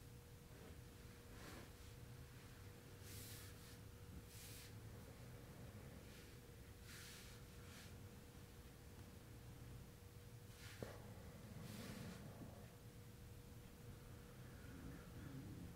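Clothing rustles softly against a mattress.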